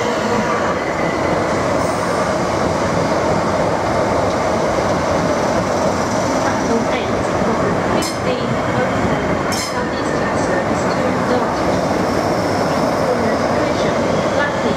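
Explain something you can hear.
A train rumbles and clatters past at speed over the rails.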